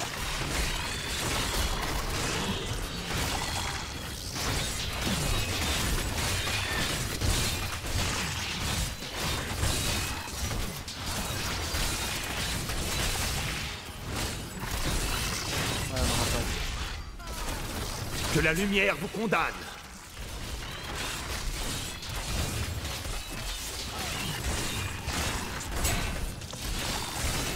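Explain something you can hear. Heavy blows thud and crash against monsters.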